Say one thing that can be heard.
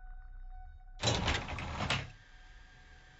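A sliding door whooshes open.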